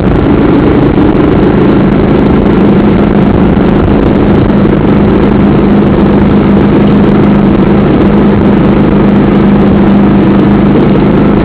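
A motorbike engine drones steadily while riding along a road.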